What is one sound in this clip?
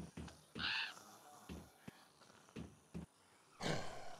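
Footsteps thud steadily on a hard road.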